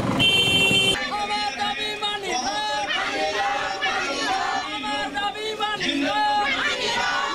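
A large crowd of men and women chants and shouts loudly outdoors.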